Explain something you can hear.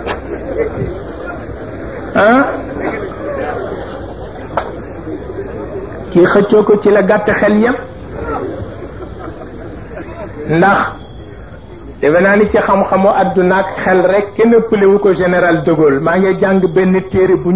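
An elderly man chants into a microphone with a strong, rising and falling voice.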